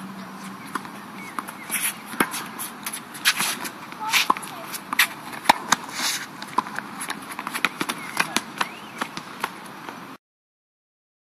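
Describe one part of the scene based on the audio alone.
Tennis rackets hit a ball back and forth with sharp pops.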